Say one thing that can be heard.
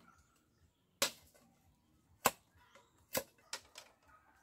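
A blade strikes bamboo with sharp, separate knocks.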